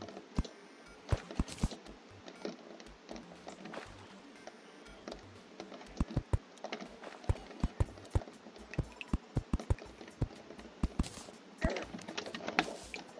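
Short, sharp digging knocks sound again and again in a video game.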